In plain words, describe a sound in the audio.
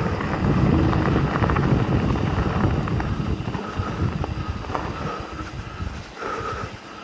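Bicycle tyres roll on a dirt trail.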